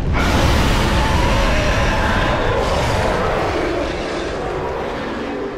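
Heavy armored footsteps clatter quickly across hard floors.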